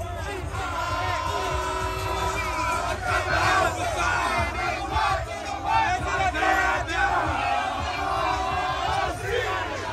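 A crowd of people talks and shouts loudly all around.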